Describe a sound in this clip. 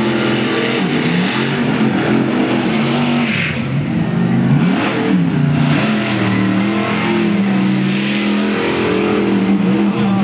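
Big tyres tear through loose dirt.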